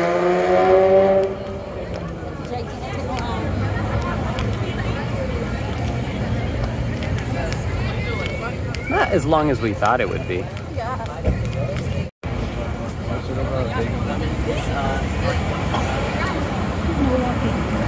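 A crowd of people chatter outdoors at night.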